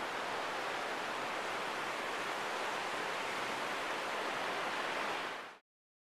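Waves break and wash steadily onto a shore outdoors.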